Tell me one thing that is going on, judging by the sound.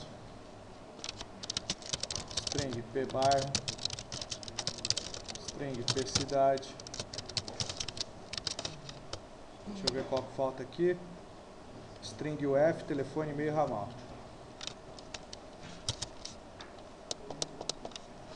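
Keys clatter on a keyboard in quick bursts of typing.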